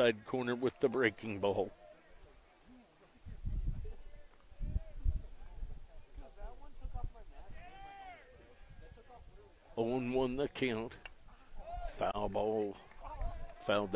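Young men shout and chatter loudly across an open field outdoors.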